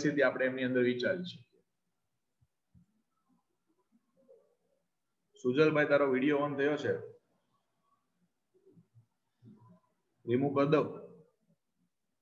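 A young man speaks calmly into a microphone in short bursts.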